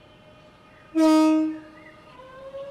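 A train horn sounds a short, loud blast.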